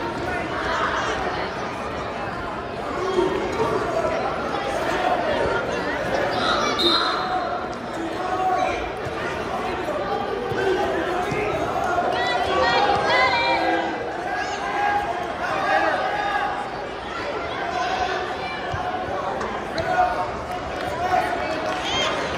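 A crowd of spectators talks and cheers in a large echoing hall.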